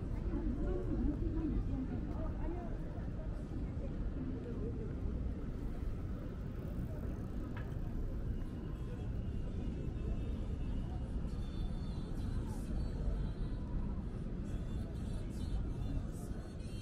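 Low city traffic rumbles steadily in the distance.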